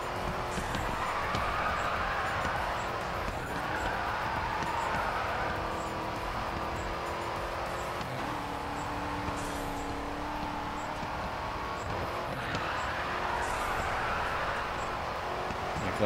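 Tyres screech while skidding.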